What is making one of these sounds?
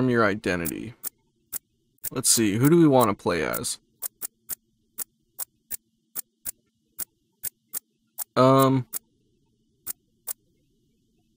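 A game menu clicks sharply as the selection changes.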